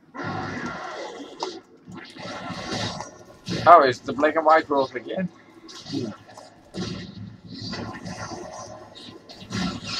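Magic spells blast and whoosh during a fight.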